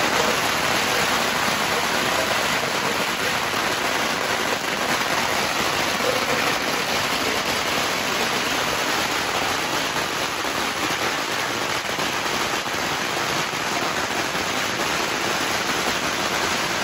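Strings of firecrackers crackle and bang rapidly and without pause, close by outdoors.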